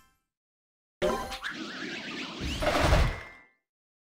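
A bright celebratory jingle plays with a burst of confetti.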